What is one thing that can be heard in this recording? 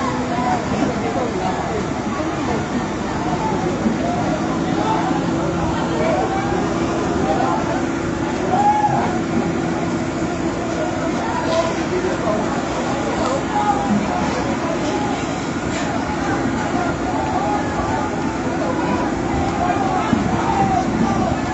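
A crowd of men and women talk and shout excitedly outdoors.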